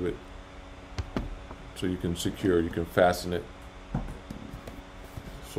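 Plastic knocks and clicks as a man handles an object.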